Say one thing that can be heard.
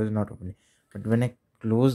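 Fingers tap on keyboard keys.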